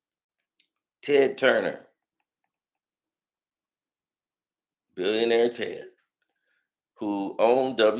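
A man speaks close to the microphone in short bursts, with pauses between.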